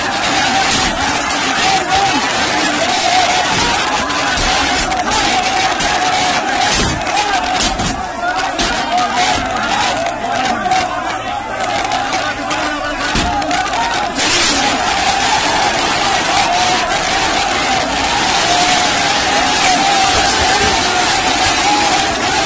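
A large crowd of young men shouts and clamours close by, outdoors.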